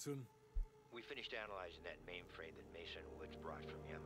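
A tape reel turns with a soft whir.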